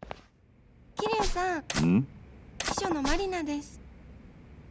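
A young woman speaks calmly and politely.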